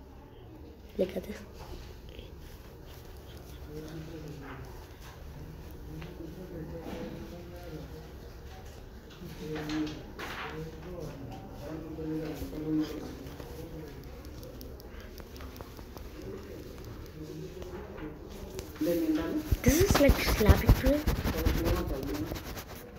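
A young boy talks through a phone call, sometimes raising his voice.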